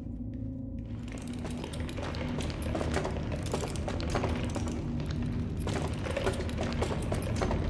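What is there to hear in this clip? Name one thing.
Shuffling footsteps and clattering knocks grow busier and louder.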